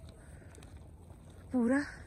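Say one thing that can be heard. Hot water bubbles and gurgles in a small pool.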